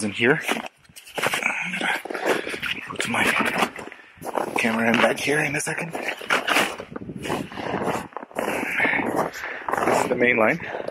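A fabric bag rustles as it is handled.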